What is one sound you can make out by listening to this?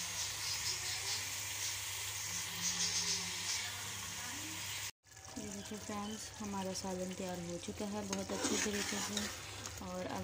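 Food sizzles and bubbles in a pot.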